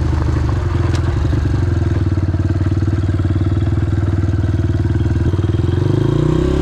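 A dirt bike engine chugs steadily close by and revs up toward the end.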